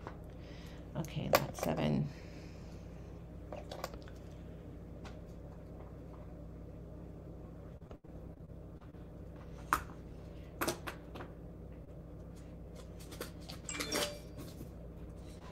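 Small objects clink and rustle as a woman handles them.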